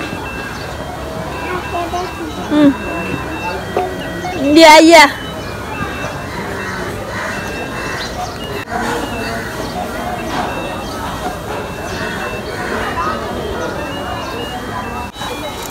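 A toy guitar plays a tinny electronic tune.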